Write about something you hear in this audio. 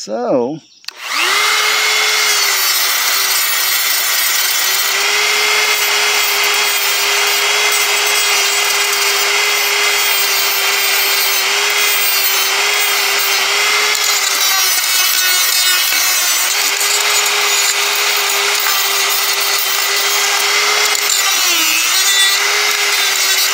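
A rotary tool whines steadily at high speed as it grinds metal.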